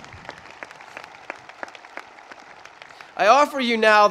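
A few people clap scattered applause.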